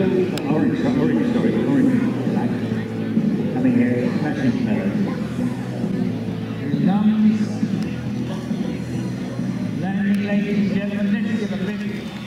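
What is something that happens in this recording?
A model jet plane's engine whines as it flies past.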